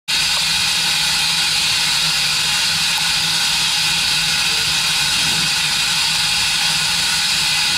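A steam locomotive hisses steadily close by.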